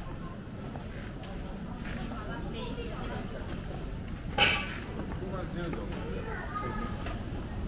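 Bicycles roll past close by.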